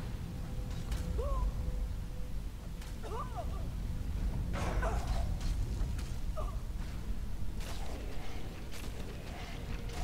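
Fire spells roar and whoosh.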